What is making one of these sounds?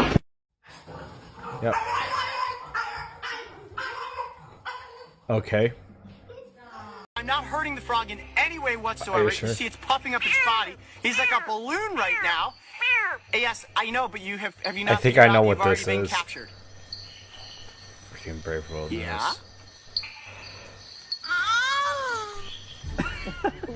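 A young man laughs and talks through a headset microphone.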